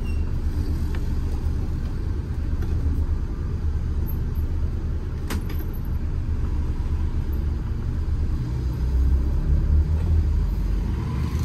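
A bus engine rumbles low and steady from inside the cab.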